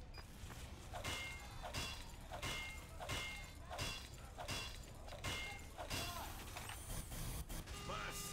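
Repeated metallic clanks of a wrench hitting a machine ring out.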